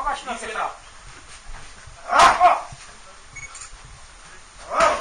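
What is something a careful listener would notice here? A man shouts loudly nearby.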